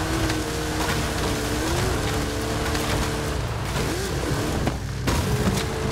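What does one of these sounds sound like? Branches scrape and snap against a vehicle.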